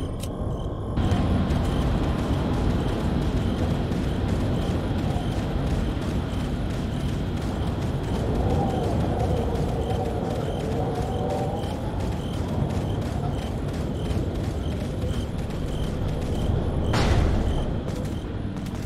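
Footsteps crunch steadily on dirt.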